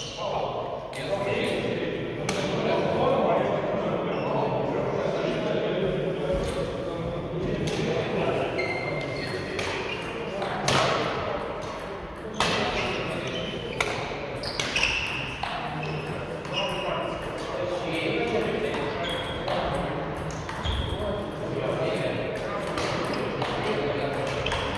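Badminton rackets strike a shuttlecock with sharp pops in an echoing hall.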